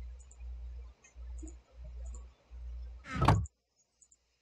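A wooden chest thumps shut.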